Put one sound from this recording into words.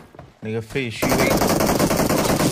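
Automatic gunfire rattles in a rapid burst.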